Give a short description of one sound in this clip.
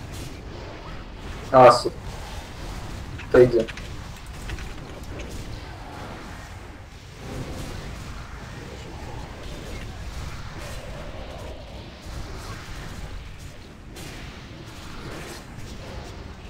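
Magic spells crackle and whoosh in a busy battle.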